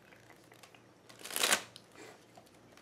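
Playing cards are shuffled and flicked.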